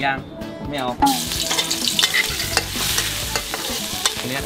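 Food sizzles in hot oil in a wok.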